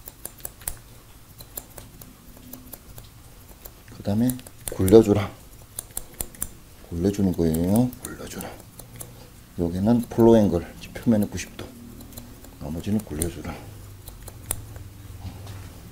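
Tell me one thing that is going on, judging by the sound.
Scissors snip through hair close by in quick crisp clicks.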